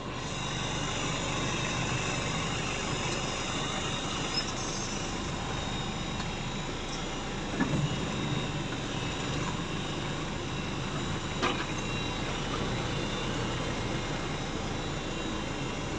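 A vehicle engine runs steadily nearby.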